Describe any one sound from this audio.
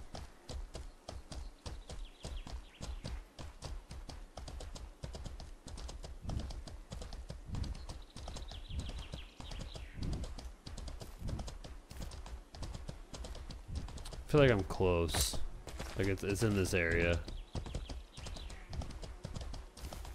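Hooves pound steadily as a horse gallops over dirt.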